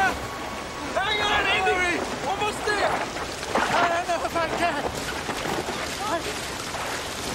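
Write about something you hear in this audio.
An elderly man shouts in distress close by.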